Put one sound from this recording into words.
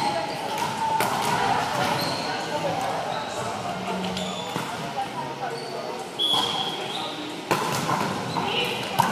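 A volleyball thuds against hands and the floor.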